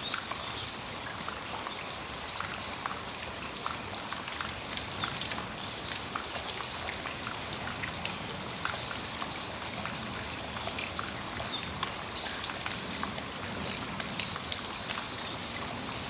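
Rain patters steadily on a metal roof outdoors, with drops tapping sharply.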